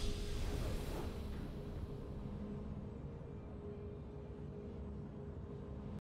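A game's victory fanfare plays with a swelling chord and slowly fades.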